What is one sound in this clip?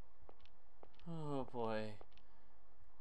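A young man lets out a short, falling groan close to a microphone.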